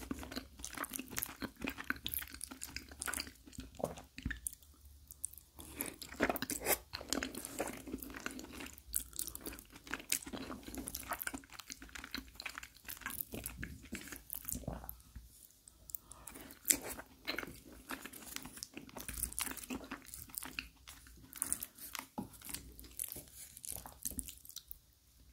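A fork squishes into soft layered pasta.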